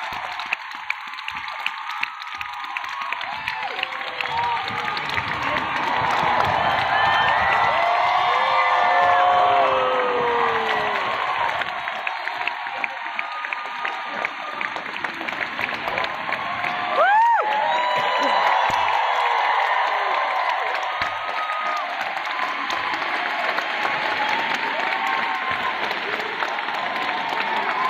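Audience members clap their hands.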